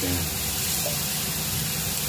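A spatula scrapes and stirs mushrooms in a pan.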